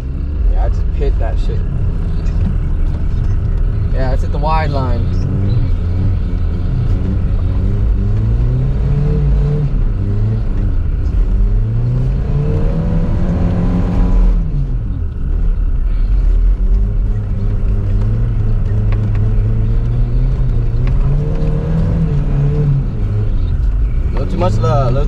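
A car engine revs up and down.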